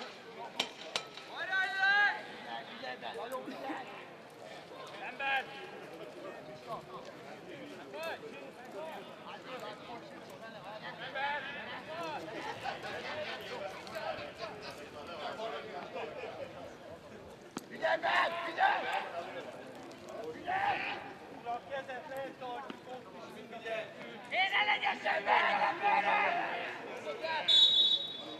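Men shout and call to each other outdoors.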